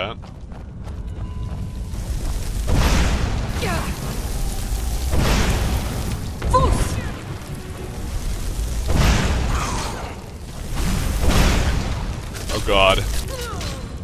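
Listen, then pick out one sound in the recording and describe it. Magic fire roars and whooshes in repeated bursts.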